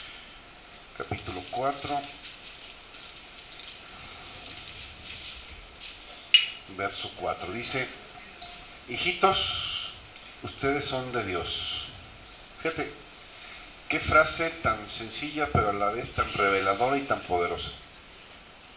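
A middle-aged man speaks calmly into a microphone, heard through a loudspeaker in a reverberant room.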